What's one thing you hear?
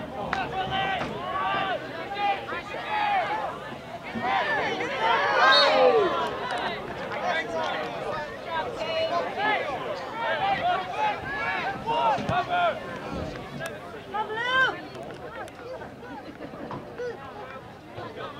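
Several young men shout and call out across an open field.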